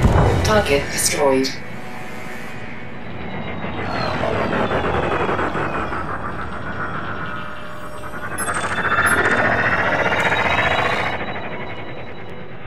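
A spaceship engine hums steadily, rising and falling in pitch.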